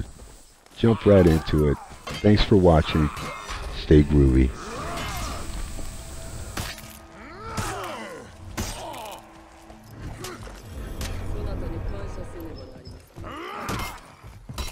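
Metal weapons clash and clang.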